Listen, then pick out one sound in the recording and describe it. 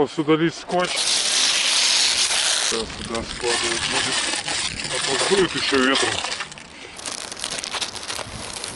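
Sticky tape rips and crackles as it is pulled off.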